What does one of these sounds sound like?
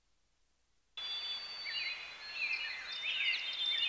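Wind blows softly through trees outdoors.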